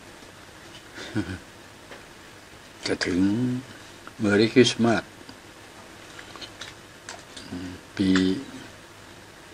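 A man speaks casually in short bursts close by.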